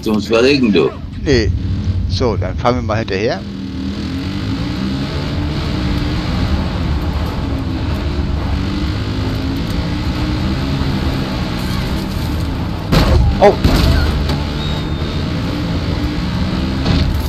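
An engine rumbles steadily as a quad bike drives along a dirt track.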